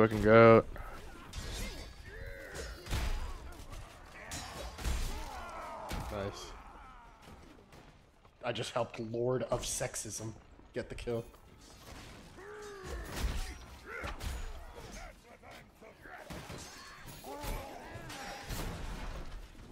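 Swords clash and strike with sharp metallic blows.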